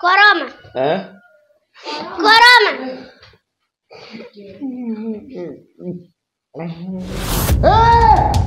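A young woman talks loudly and with animation close by.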